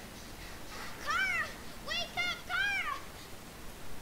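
A young girl cries out in a high, frightened voice.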